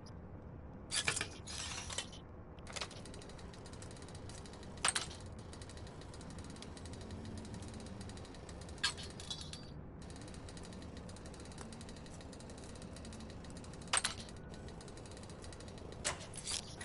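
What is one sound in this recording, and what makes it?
A metal lock clicks as it is picked.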